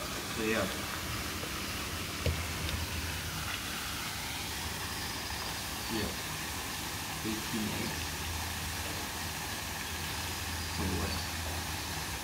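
A young man speaks a few short words nearby.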